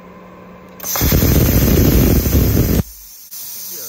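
Compressed air hisses loudly from a cutting torch.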